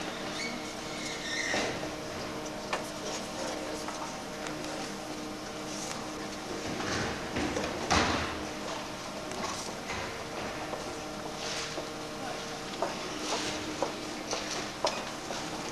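A man rummages and knocks about in a bin.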